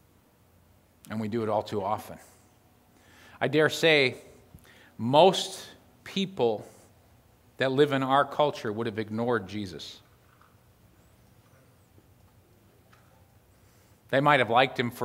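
A middle-aged man speaks calmly through a microphone, with pauses.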